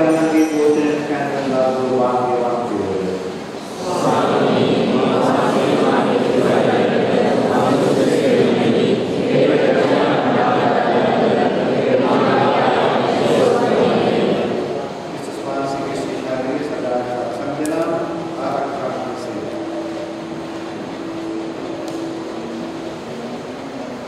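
An elderly man chants through a microphone in a large echoing hall.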